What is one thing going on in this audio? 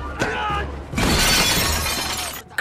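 Plates and glass crash onto a table.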